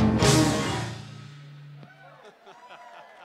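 A live band strikes a loud chord that rings out and fades.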